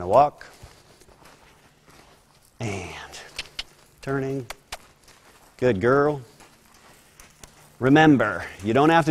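Horse hooves thud softly on loose dirt.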